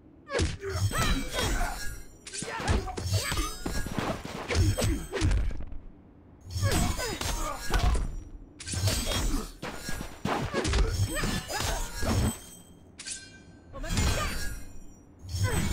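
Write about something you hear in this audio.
Heavy blows and staff strikes thud and crack in a fighting game.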